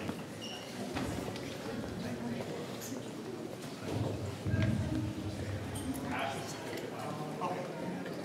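Men talk with each other in a large echoing room.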